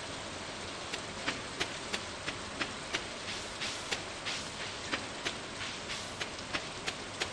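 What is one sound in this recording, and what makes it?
Footsteps scuff on a dirt path.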